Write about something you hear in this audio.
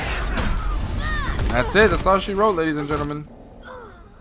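Heavy blows and crashes land in a brawl.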